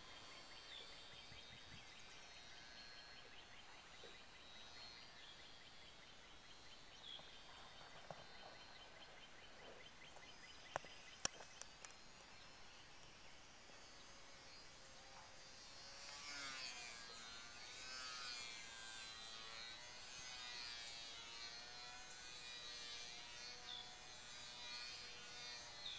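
A small model plane engine buzzes high overhead, growing louder and rising and falling in pitch.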